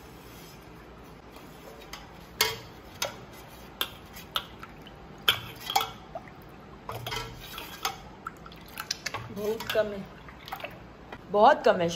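A metal ladle clinks against a steel pot while stirring.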